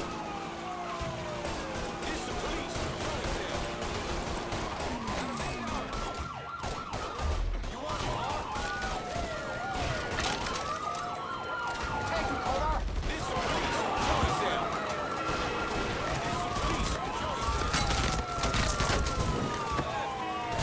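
Police sirens wail up and down.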